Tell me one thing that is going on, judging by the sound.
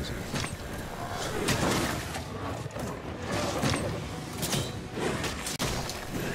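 A blade slashes and strikes with sharp swooshing hits.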